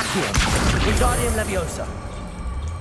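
A magic spell bursts with a loud crackling whoosh.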